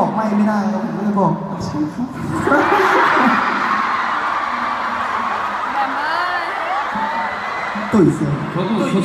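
A young man speaks into a microphone over loudspeakers in a large echoing arena.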